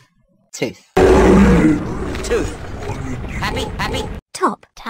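A man speaks gruffly.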